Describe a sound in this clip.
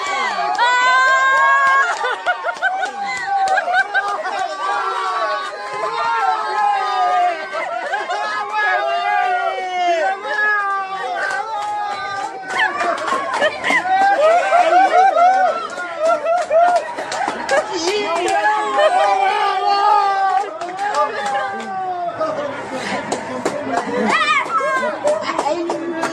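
A group of men sing loudly together close by.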